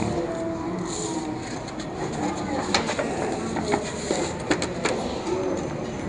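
Paper rustles and crinkles as a menu is unfolded.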